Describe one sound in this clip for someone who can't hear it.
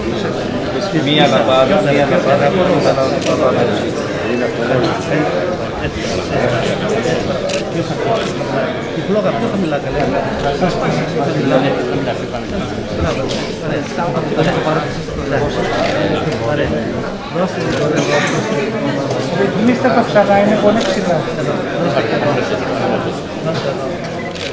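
A crowd of men and women talks and murmurs close by, in a room with some echo.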